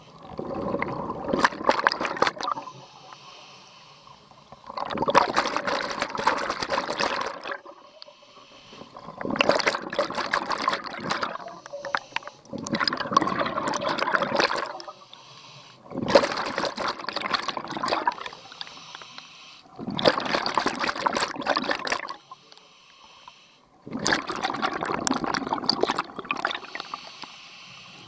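A diver's regulator bubbles loudly in regular bursts underwater, every few seconds.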